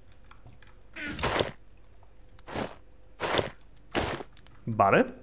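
Leather armour rustles as it is put on, several times.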